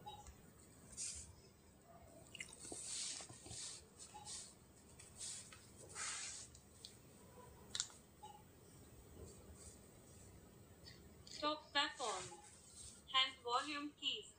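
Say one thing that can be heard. Hands shuffle and rustle while handling a phone.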